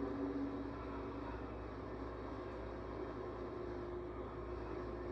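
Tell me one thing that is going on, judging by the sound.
Wind whooshes steadily from a television speaker.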